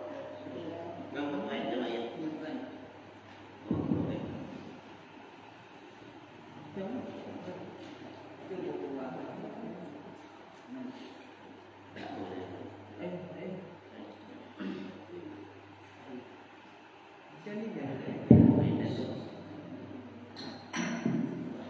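Several men talk quietly nearby.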